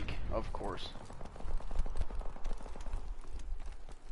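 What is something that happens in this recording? A rifle fires in a rapid burst.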